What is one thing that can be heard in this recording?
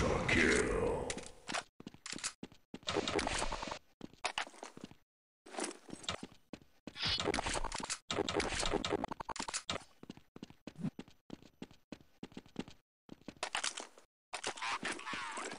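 Footsteps scuff quickly on stone.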